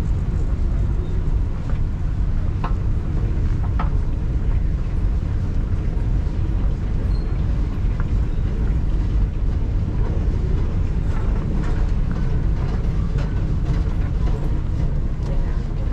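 A moving walkway rumbles and hums steadily.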